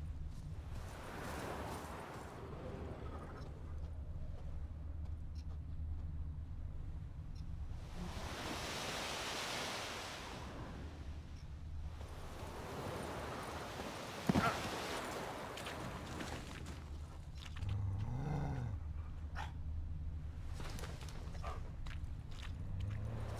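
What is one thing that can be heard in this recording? Wind gusts and swells outdoors.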